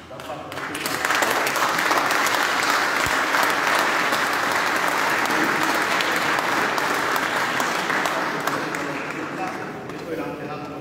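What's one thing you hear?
An audience claps and applauds in an echoing hall, rising quickly and fading toward the end.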